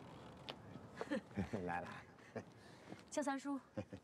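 A woman speaks cheerfully close by.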